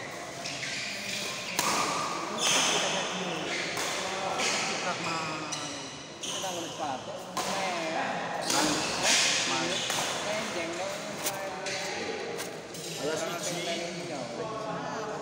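Men chatter and call out in an echoing hall.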